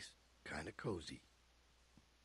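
A man speaks calmly and casually, close by.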